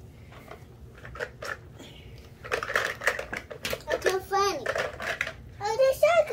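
Plastic toy pieces rattle and clatter in a tub.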